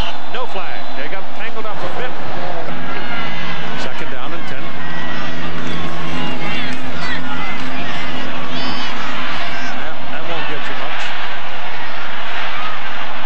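A large crowd cheers and roars in an open stadium.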